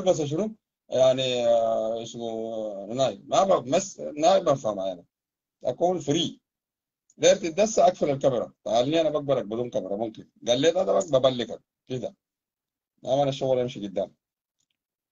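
A man speaks calmly and closely over a phone-like microphone.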